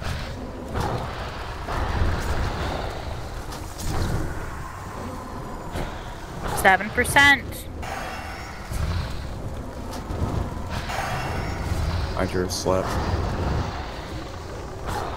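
Magic spells whoosh and crackle amid the clash of a fantasy battle.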